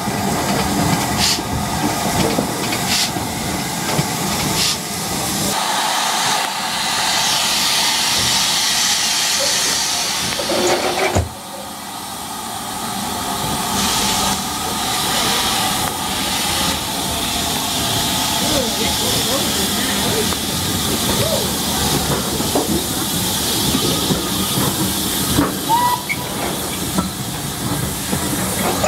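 Steam hisses loudly from a locomotive.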